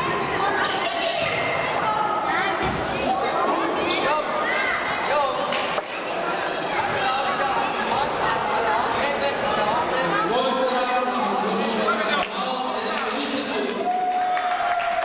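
Children shout and cheer excitedly.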